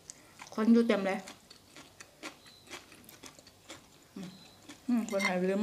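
A young woman crunches on a raw vegetable.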